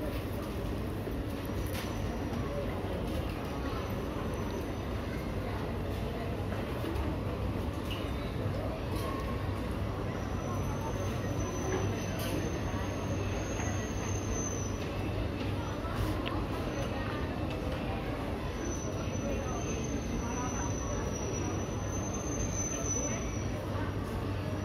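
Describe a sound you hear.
A crowd murmurs and chatters in the distance in a large echoing hall.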